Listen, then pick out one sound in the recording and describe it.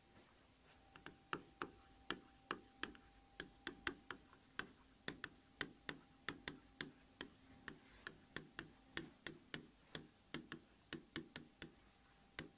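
Chalk taps and scrapes in quick, uneven strokes on a board.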